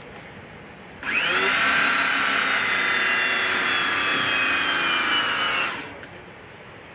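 A battery tool whirs loudly and steadily, then stops.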